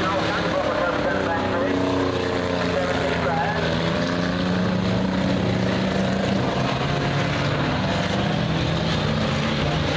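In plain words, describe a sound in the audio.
A crowd of spectators cheers outdoors.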